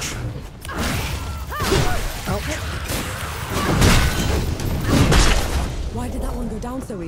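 Sword blows land with sharp, heavy impacts.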